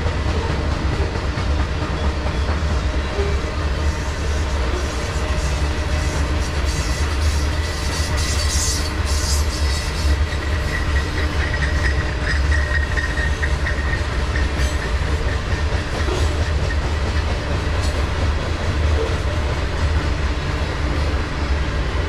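Steel wheels clatter and squeal on the rails.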